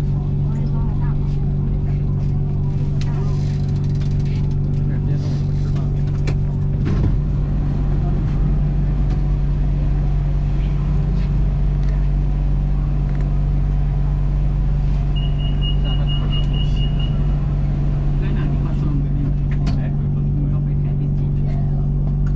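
A train hums and rumbles steadily as it rolls slowly along the tracks.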